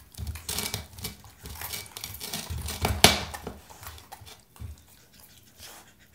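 A pepper knocks and scrapes on a wooden floor.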